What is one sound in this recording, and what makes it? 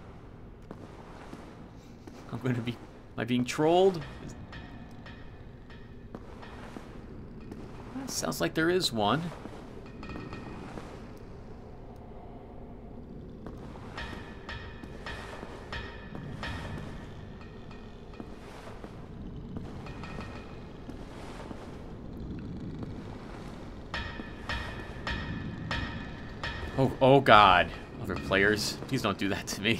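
Armoured footsteps run and clank on stone steps.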